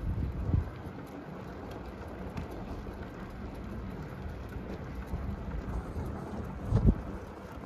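Wind blows outdoors in gusts.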